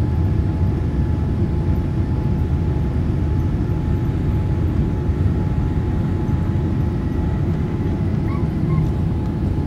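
Jet engines roar steadily as an airliner taxis.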